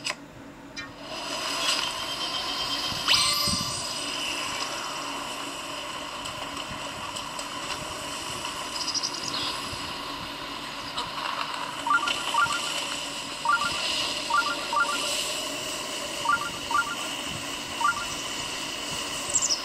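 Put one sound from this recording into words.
A game motorcycle engine hums steadily from a small speaker.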